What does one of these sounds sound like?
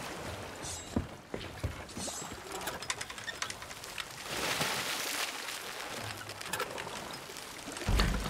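Water laps gently against a wooden dock.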